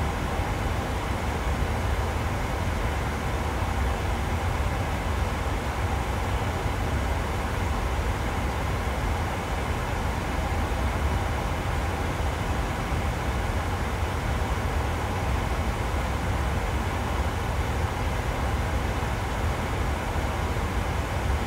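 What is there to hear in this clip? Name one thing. A jet airliner's engines drone steadily in flight.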